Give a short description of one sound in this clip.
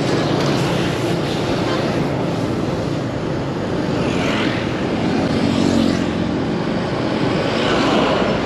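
A truck engine rumbles as it passes close by.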